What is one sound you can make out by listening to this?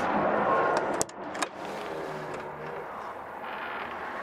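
A vehicle door latch clicks open.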